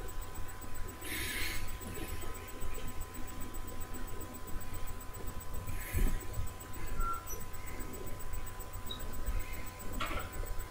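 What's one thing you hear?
Clothes rustle as a man shifts in a chair.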